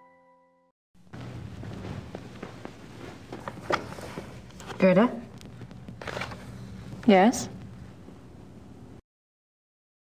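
A woman speaks calmly in a room.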